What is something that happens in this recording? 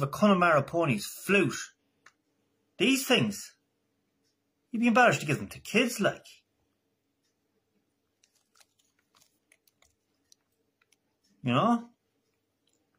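A man speaks calmly and close up, in short bursts.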